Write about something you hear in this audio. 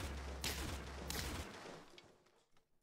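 A cartoon fight effect whooshes and thumps.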